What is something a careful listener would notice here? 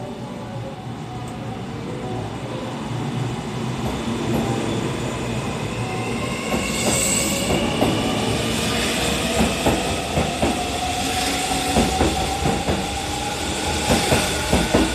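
A train rolls past close by, its rumble growing louder.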